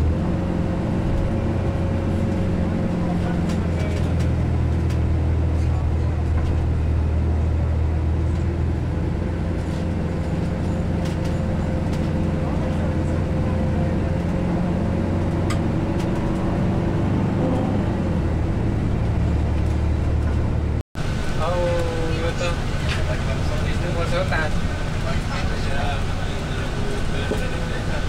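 Car traffic drives along a multi-lane road.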